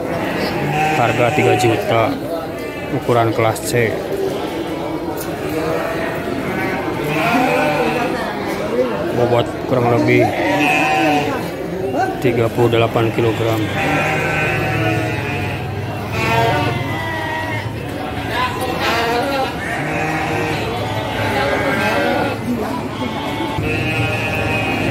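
Men talk loudly close by.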